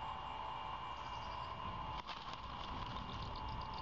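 An owl's wings flap as it takes off from a nest of sticks.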